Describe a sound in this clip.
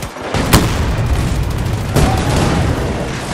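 An explosion booms with a roaring blast of fire.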